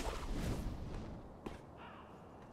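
Something lands heavily with a thud.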